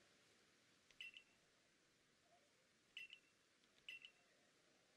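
A short electronic chime sounds as a line of text moves on.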